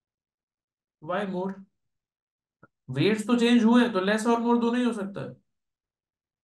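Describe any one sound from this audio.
A young man speaks calmly through a close microphone.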